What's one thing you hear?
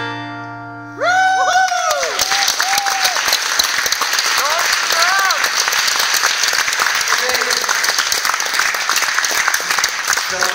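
A large audience claps and cheers loudly.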